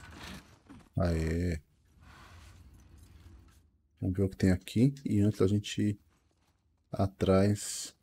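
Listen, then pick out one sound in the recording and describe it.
A man speaks into a microphone with animation, close by.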